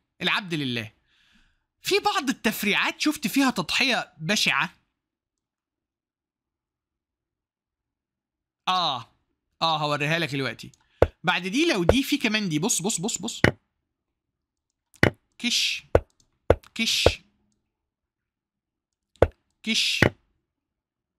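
A man talks with animation close to a microphone, in bursts with pauses.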